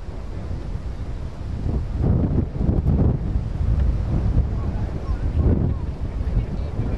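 Men talk with each other at a distance.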